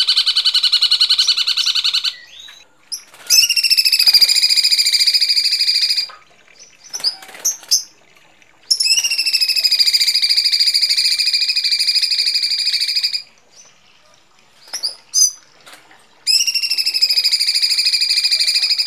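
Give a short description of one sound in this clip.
A bird chirps in fast, harsh, rattling bursts.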